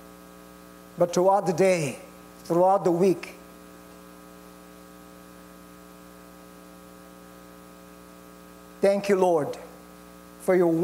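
An older man speaks calmly into a microphone, with long pauses.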